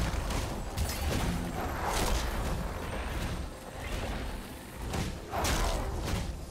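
Game spell effects crackle and whoosh in a busy fight.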